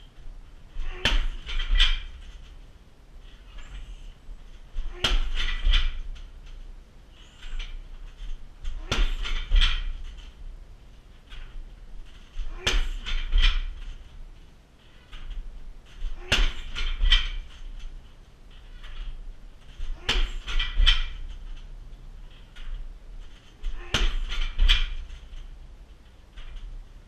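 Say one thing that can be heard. A punching bag's chains rattle and creak after each hit.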